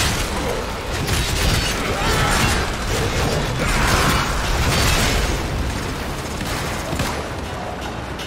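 Weapons fire in loud, crackling bursts with sharp electronic blasts.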